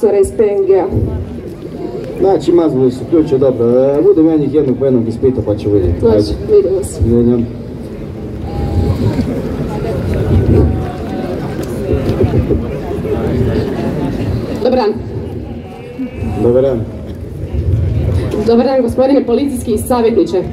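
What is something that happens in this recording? A man speaks loudly through a loudspeaker outdoors.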